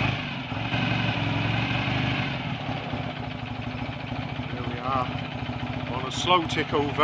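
A motorcycle engine idles close by with a steady, throbbing beat.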